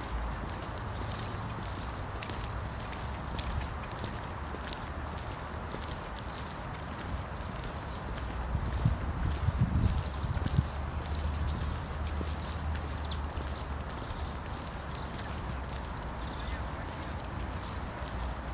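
Sandals tap on pavement with light footsteps.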